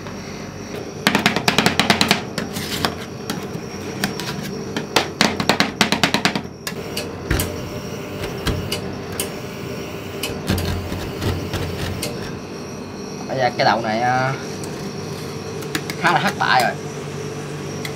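Metal spatulas scrape and clack rapidly on a metal plate.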